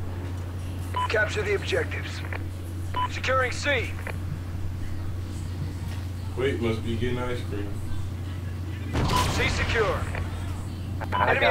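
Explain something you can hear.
A man speaks with animation into a microphone, close up.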